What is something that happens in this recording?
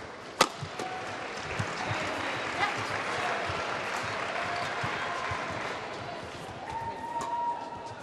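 A large crowd cheers and applauds in an echoing hall.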